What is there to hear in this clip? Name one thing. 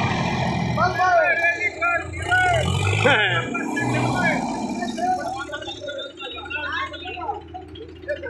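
Men shout and cheer nearby outdoors.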